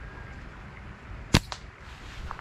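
A pole pruner snaps shut with a sharp click.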